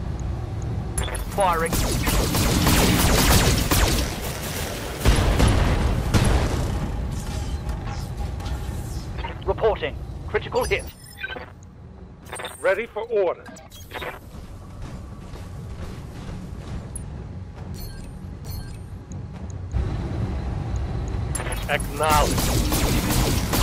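Laser weapons fire in loud, crackling bursts.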